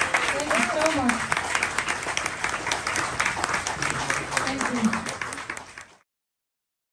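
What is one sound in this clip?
A small crowd claps close by.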